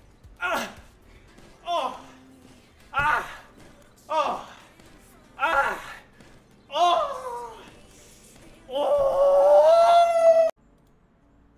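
A young man shouts excitedly in short repeated bursts, close to a microphone.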